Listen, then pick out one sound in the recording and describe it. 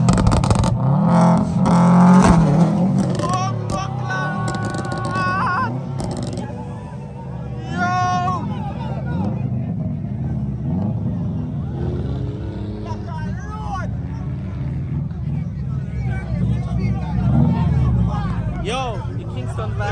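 A car engine revs and roars loudly.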